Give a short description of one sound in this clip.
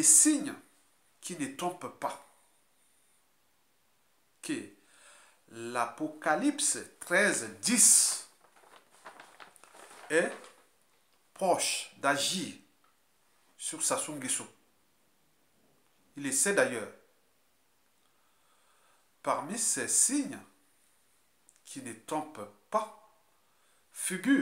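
A middle-aged man speaks calmly and closely, in short phrases with pauses.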